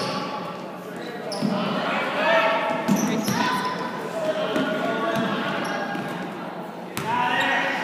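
People shout and cheer in a large echoing gym.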